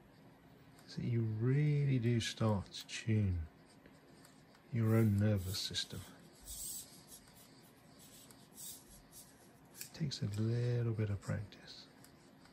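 A man speaks calmly close to the microphone, in short bursts with pauses.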